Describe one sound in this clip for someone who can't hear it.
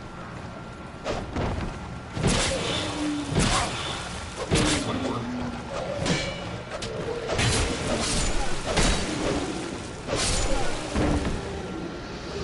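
Swords clash and thud in a fight.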